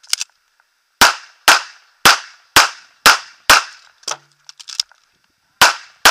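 A pistol fires a rapid series of loud shots outdoors.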